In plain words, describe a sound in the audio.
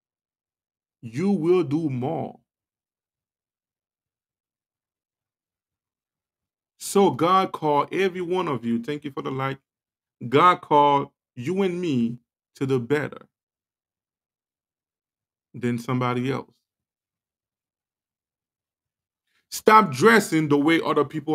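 A man speaks with animation close to a microphone, in short bursts with pauses.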